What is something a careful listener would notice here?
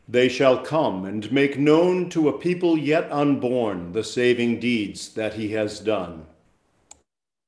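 A middle-aged man reads aloud steadily, heard through an online call.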